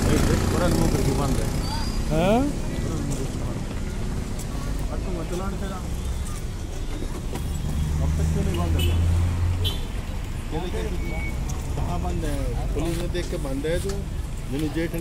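Many men and women chatter nearby outdoors.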